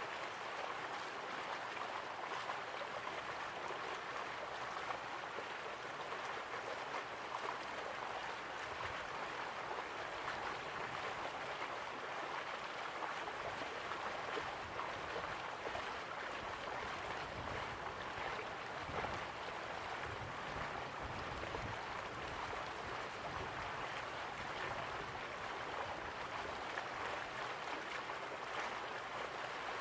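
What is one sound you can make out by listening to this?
Waterfalls rush and splash steadily in the distance.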